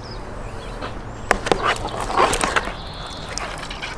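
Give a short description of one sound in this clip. Pieces of fish slap softly into a plastic tub.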